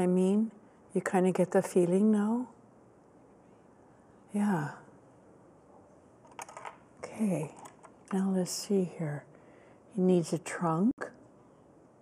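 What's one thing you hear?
An elderly woman talks calmly and close by.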